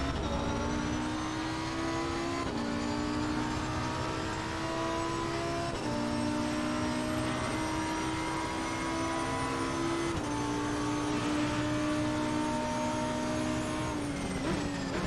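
A racing car engine roars at high revs, rising in pitch and dropping sharply with each gear shift.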